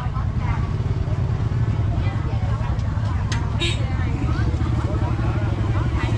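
A plastic bag rustles.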